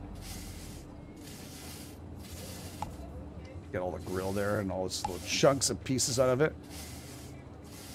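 A wire brush scrubs a metal grill in short repeated strokes.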